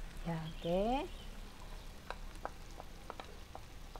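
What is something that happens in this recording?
Beans tip into a sizzling pan.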